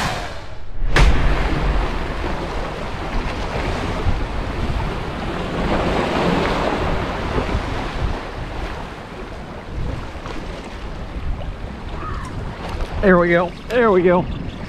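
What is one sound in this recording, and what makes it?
Waves splash against rocks close by.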